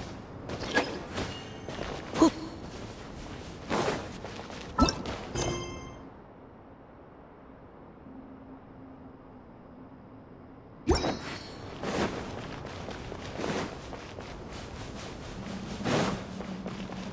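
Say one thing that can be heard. Game sound effects chime and swoosh.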